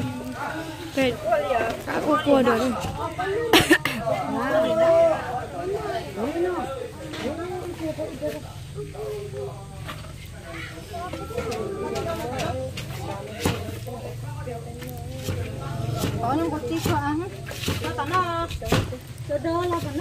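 A knife taps on a wooden chopping board.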